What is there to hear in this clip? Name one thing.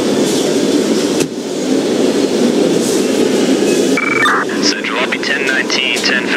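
A fire engine drives along with its engine rumbling.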